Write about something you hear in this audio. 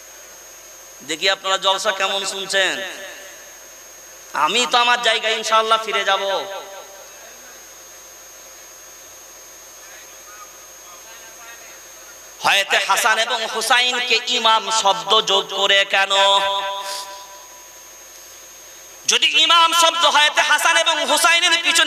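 A man preaches forcefully into a microphone over a loudspeaker, in bursts with pauses.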